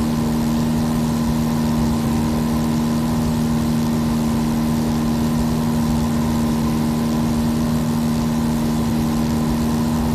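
A small propeller plane's engine drones steadily close by.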